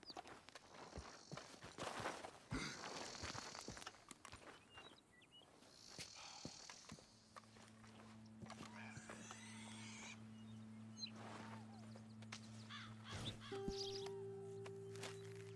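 Boots crunch over rocky ground.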